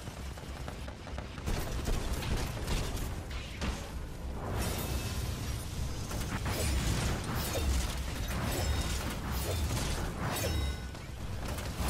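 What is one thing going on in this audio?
A heavy machine rumbles and thuds with deep steps.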